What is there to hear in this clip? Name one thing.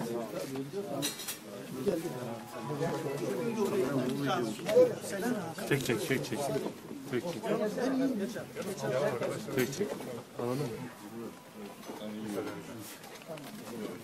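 A man laughs nearby.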